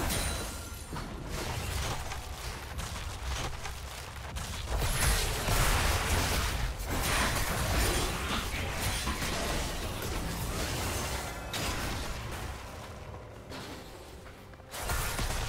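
Magic spells crackle and burst as fighters clash in a video game battle.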